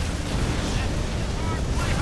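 Tanks fire and explosions boom in a battle.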